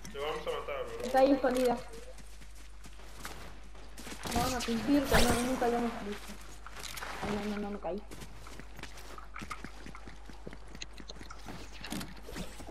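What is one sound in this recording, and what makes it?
Footsteps patter quickly over grass and rock.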